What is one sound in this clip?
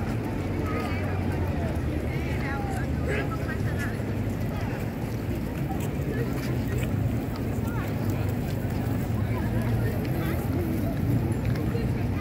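A crowd of people chatters outdoors in a wide open square.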